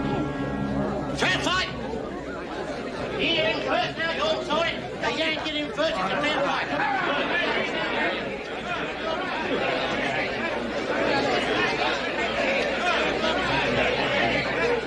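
A crowd of men murmurs and talks excitedly in a room.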